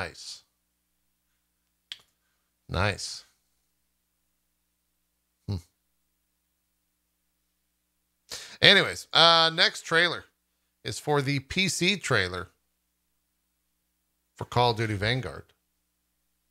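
A man talks close into a microphone in short bursts with pauses.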